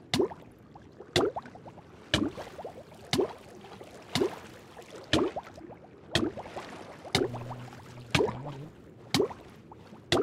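A short pained hurt sound repeats about once a second as a game character drowns.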